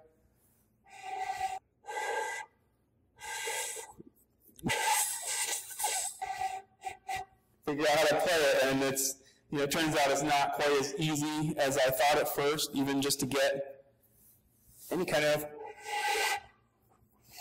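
A man plays short breathy notes on a homemade pipe flute.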